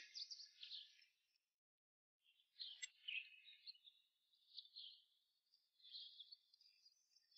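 A trowel scrapes into soft soil.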